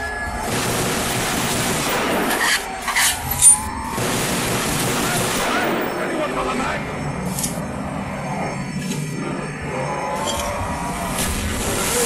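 Zombies growl and groan nearby.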